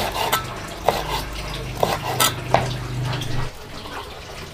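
A knife chops on a wooden board.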